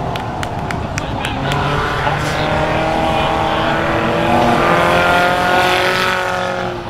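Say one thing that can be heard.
Race car engines roar loudly around a dirt track outdoors.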